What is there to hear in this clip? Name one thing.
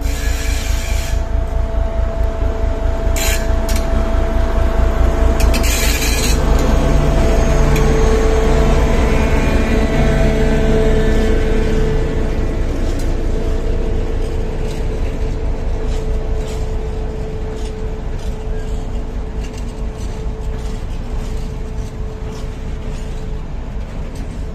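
A diesel locomotive rumbles past close by, its engine droning loudly.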